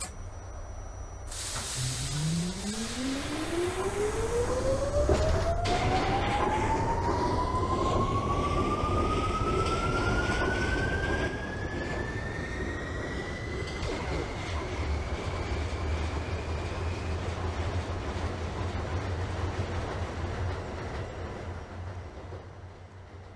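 A subway train's wheels rumble on the rails.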